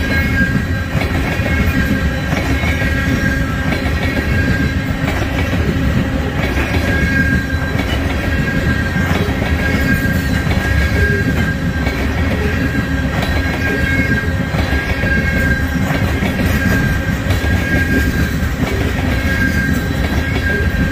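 Train wheels squeal on the rails with a steady high whine.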